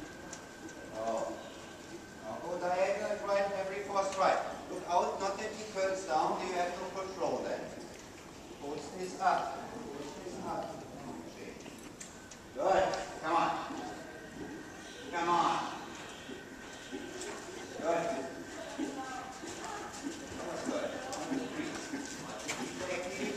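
A man calls out instructions loudly, echoing in a large hall.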